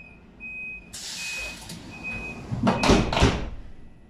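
Train doors hiss and slide shut with a thud.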